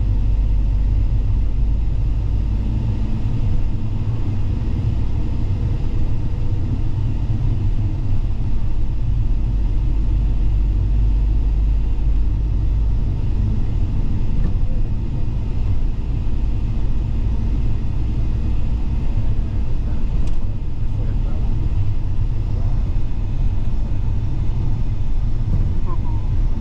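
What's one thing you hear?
A vehicle's engine rumbles steadily with road noise from inside the car.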